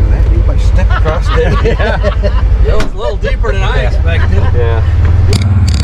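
A man speaks calmly close by inside the vehicle.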